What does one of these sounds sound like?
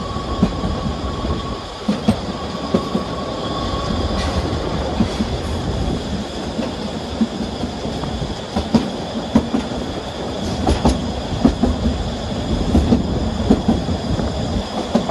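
A small train rumbles and clatters steadily along the track.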